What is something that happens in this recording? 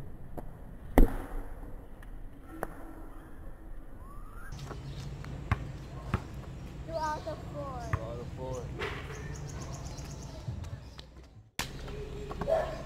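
A basketball clangs against a metal hoop.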